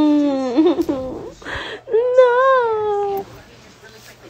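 A baby cries loudly close by.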